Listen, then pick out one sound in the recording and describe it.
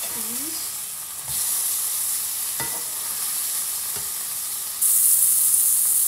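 A spatula taps and scrapes against a frying pan.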